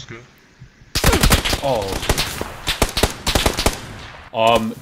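Rapid gunshots crack in bursts.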